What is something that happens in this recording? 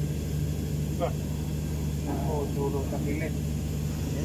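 Metal parts clink and knock inside an engine bay.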